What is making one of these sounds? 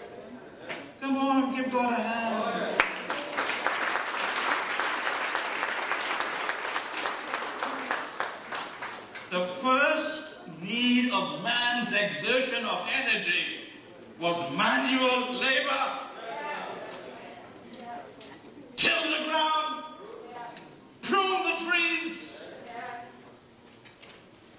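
An elderly man speaks with animation through a microphone in an echoing hall.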